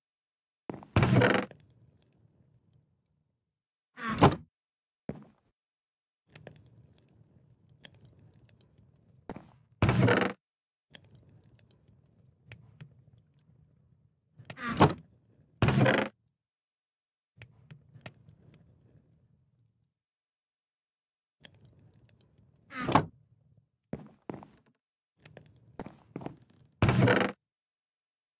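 A wooden chest creaks open several times.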